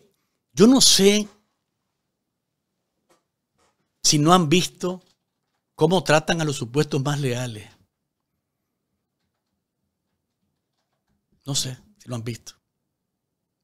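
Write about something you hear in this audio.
A man speaks with animation close to a microphone, in short bursts with pauses.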